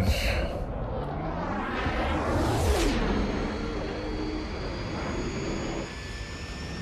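A spaceship's engines roar and whoosh past.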